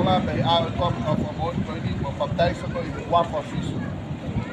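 A man speaks loudly outdoors, close by.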